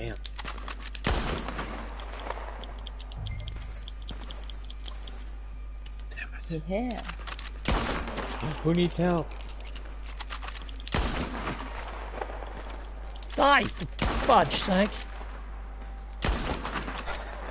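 Sniper rifle shots ring out sharply now and then.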